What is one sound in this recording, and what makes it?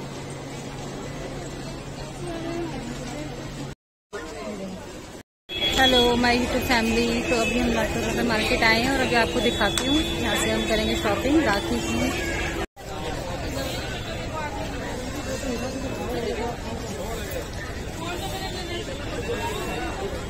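A crowd chatters and bustles outdoors.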